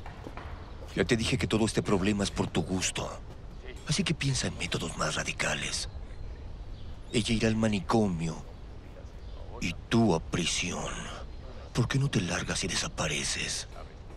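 A man speaks in a low, calm voice close by.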